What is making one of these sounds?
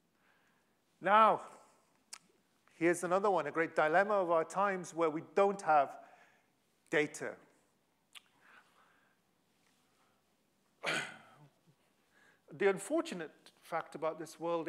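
A man lectures through a microphone, speaking calmly with pauses.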